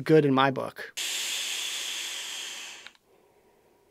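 A man draws a long hissing breath through a vape.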